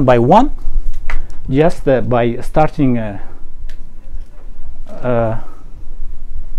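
A middle-aged man lectures calmly through a microphone, pausing often.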